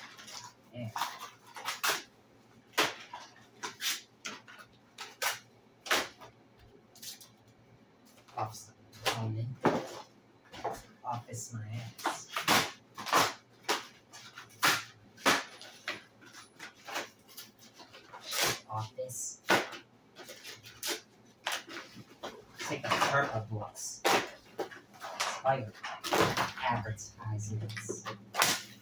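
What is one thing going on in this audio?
Objects clatter and thump on a wooden floor.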